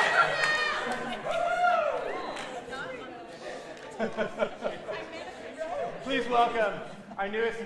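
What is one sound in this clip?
A choir of young men and women sings in a large echoing hall.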